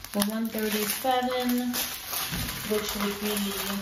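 A plastic bag crinkles as a hand handles it.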